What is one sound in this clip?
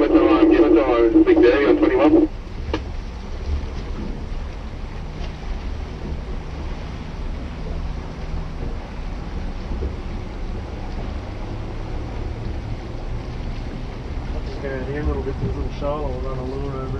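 A man talks close by with animation.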